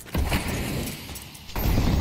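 A smoke grenade hisses as it bursts.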